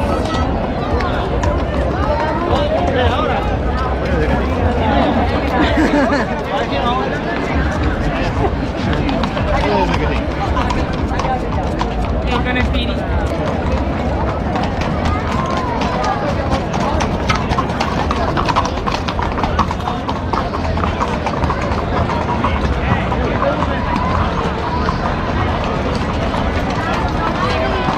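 Horse hooves clop on cobblestones.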